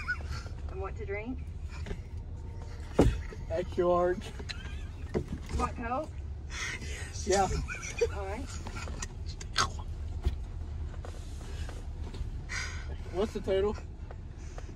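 A young man talks nearby inside a car.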